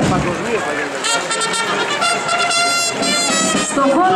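A military band plays brass music.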